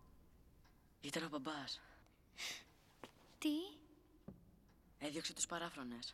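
A young man speaks softly and weakly, close by.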